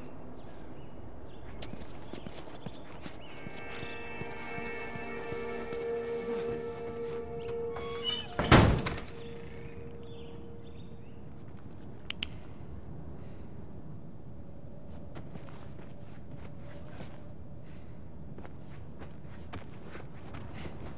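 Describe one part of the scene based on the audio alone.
Footsteps scuff along the ground.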